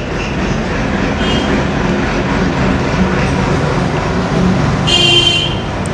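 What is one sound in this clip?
An elderly woman speaks close by.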